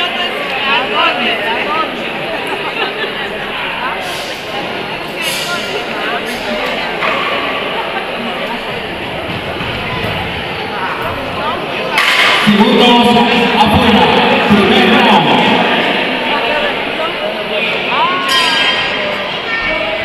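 A crowd murmurs and chatters throughout a large echoing hall.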